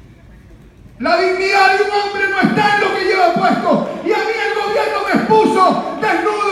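A crowd of men chants and shouts loudly in a large echoing hall.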